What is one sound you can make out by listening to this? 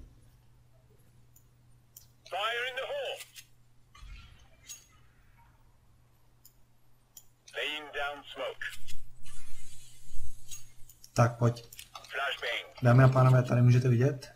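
Weapons are switched with short metallic clicks.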